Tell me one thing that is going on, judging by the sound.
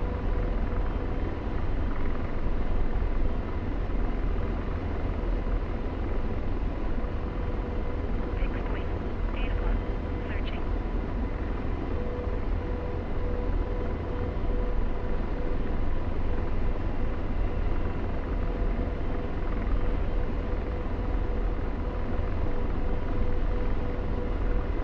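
A helicopter's engine and rotor drone loudly and steadily from inside the cockpit.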